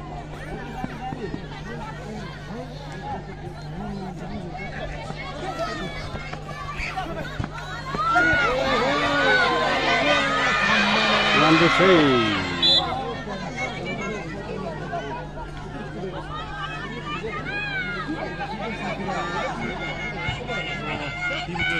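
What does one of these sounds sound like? A large outdoor crowd murmurs and calls out throughout.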